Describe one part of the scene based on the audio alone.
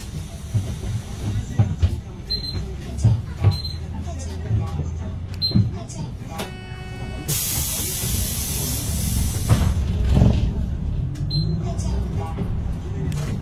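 A bus rattles and knocks over bumps in the road.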